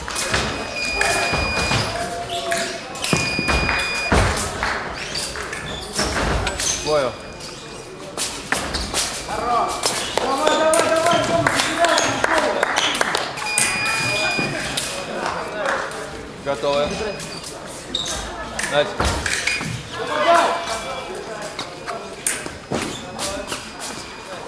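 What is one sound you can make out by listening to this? Fencers' shoes squeak and stamp on the floor in a large echoing hall.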